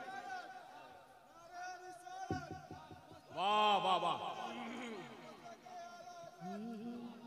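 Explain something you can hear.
A young man sings a melodic recitation into a microphone, heard through loudspeakers with some echo.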